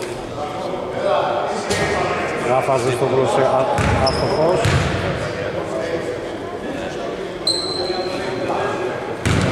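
A basketball bounces and thuds on a wooden floor.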